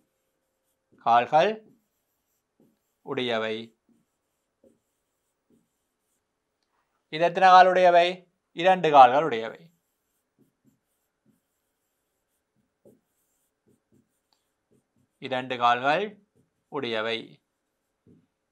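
A man speaks slowly and clearly, close by, in short phrases with pauses.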